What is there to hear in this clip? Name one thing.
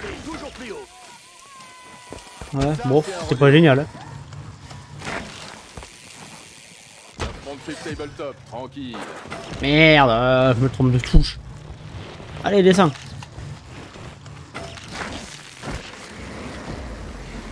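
Bicycle tyres roll and crunch over a dirt track.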